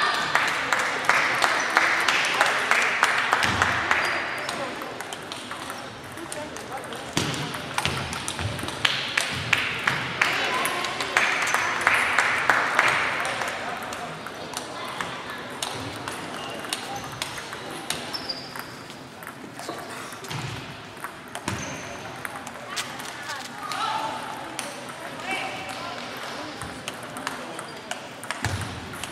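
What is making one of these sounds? Table tennis balls click rapidly on tables and paddles in a large echoing hall.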